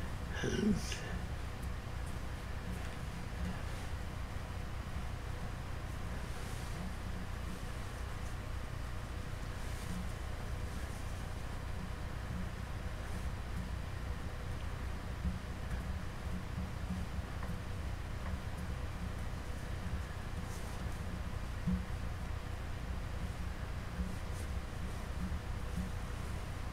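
Hands softly press and smooth soft clay close by.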